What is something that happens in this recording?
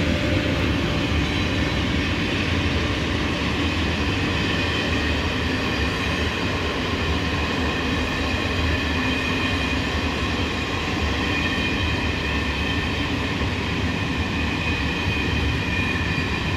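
Train wheels clatter on the rails.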